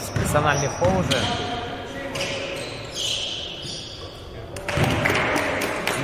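Sneakers squeak on a wooden court in an echoing hall.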